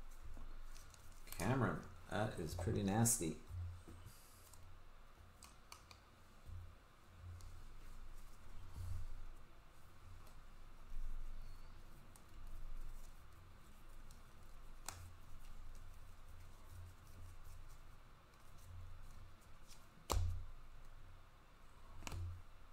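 Trading cards shuffle and rustle in hands.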